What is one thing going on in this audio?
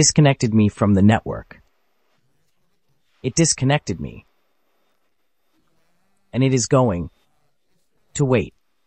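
A young man speaks calmly and close to a microphone, in short phrases with pauses.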